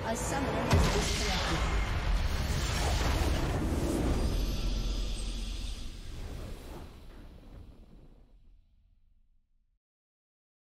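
A triumphant victory fanfare swells and slowly fades away.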